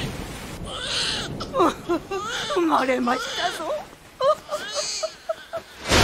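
Elderly women laugh and chatter gleefully.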